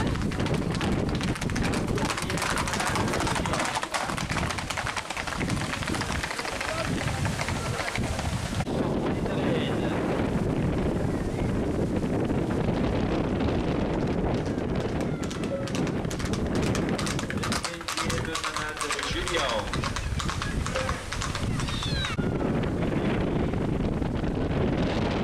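Horse hooves clatter on asphalt.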